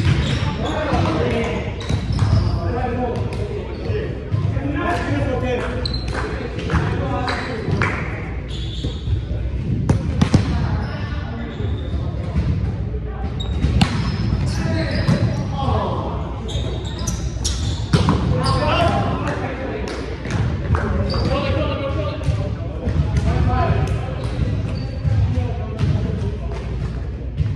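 Young men talk and call out across a large echoing hall.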